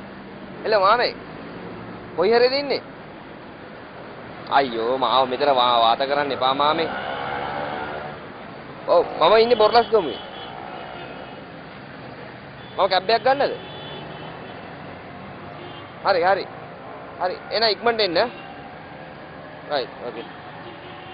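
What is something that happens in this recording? A young man talks on a phone close by, in short animated bursts with pauses.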